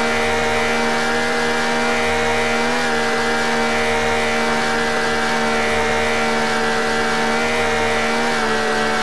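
A car engine hums steadily at high speed, with small shifts in pitch.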